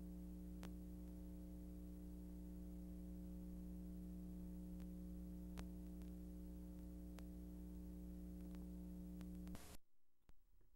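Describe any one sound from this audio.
Loud tape static hisses and hums steadily, then cuts off abruptly.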